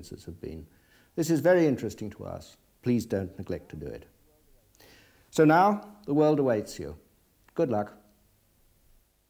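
An elderly man speaks calmly and clearly into a microphone, close by.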